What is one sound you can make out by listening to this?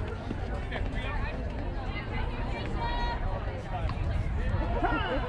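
Young women call out to each other across an open outdoor field.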